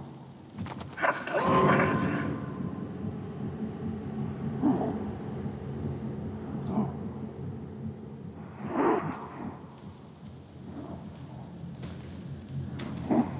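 Small footsteps rustle through tall grass.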